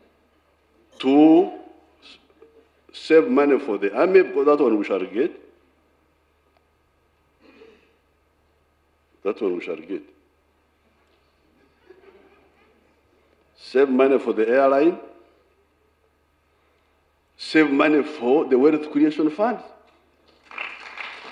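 An elderly man speaks with animation into a microphone, in bursts with pauses.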